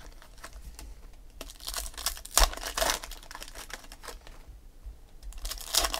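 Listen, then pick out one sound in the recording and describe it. Trading cards rustle and slide as they are handled.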